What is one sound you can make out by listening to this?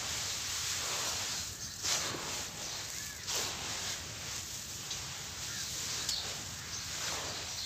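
Hands crumble and rub dry soil close up.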